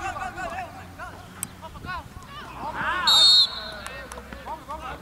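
Children shout and call out across an open outdoor pitch.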